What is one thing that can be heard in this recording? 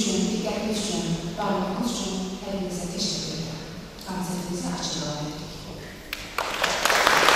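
A woman sings into a microphone in an echoing hall.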